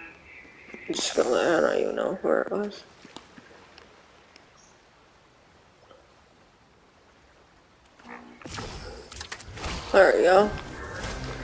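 Small waves wash gently onto a sandy shore.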